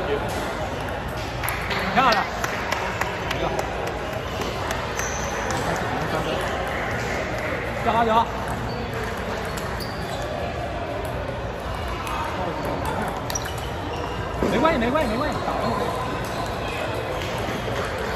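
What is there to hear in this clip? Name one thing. A busy indoor hall hums with echoing chatter.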